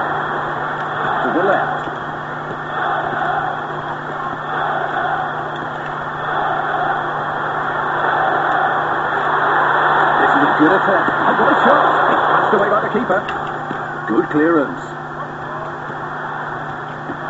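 A large crowd roars steadily, swelling louder for a while.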